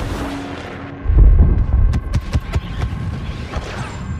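A deep rumbling blast booms and rolls on.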